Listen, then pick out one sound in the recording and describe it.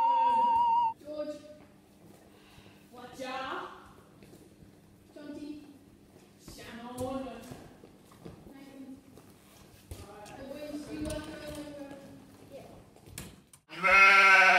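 Boys talk in a large echoing hall.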